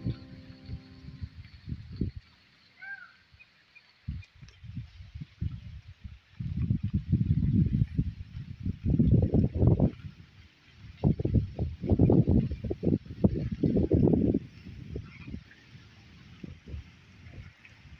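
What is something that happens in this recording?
Wind gusts outdoors, buffeting the microphone in low rumbling bursts.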